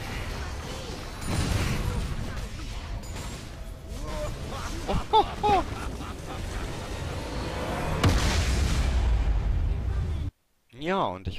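Game spells and combat effects clash and boom in a dense, noisy battle.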